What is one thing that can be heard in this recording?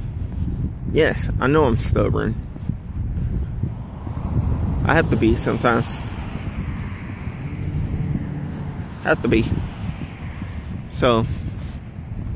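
A young man talks close to the microphone in short, animated bursts.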